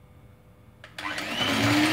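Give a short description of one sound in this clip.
An electric hand mixer whirs loudly.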